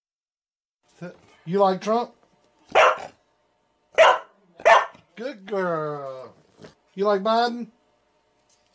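A dog howls and yowls loudly close by.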